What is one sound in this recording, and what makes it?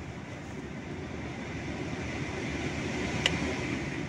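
A button on a control panel clicks.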